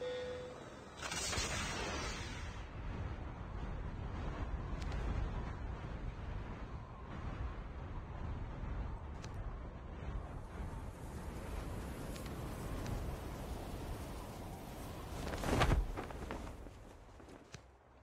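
Wind rushes loudly past a falling skydiver.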